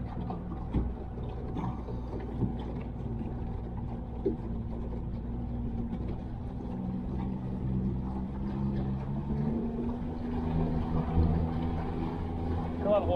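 Water laps against a boat's hull.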